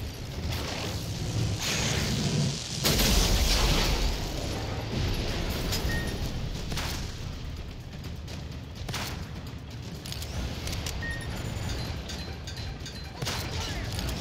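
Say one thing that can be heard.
A heavy gun fires in sharp bursts.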